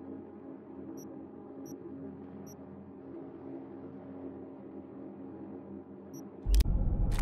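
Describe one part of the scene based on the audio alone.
Soft menu clicks sound as items are selected.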